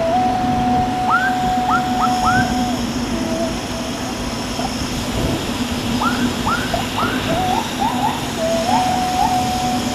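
Wind rushes and buffets steadily past a moving rider.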